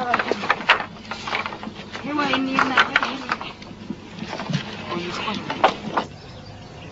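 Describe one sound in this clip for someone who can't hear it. Wooden poles knock and clatter together.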